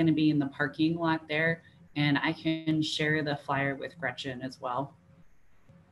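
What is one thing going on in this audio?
A young adult speaks calmly over an online call.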